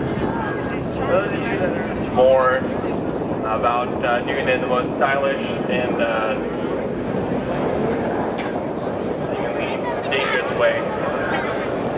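Race cars drive along a track in the distance, their engines humming.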